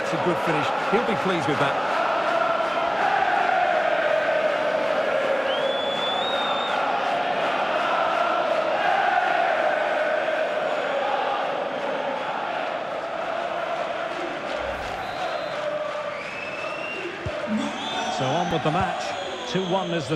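A large crowd roars and cheers steadily.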